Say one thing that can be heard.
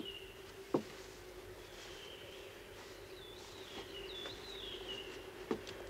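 Cloth bags rustle as they are lifted.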